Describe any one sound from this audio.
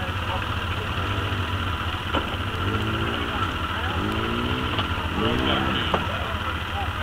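An off-road vehicle engine revs up and down.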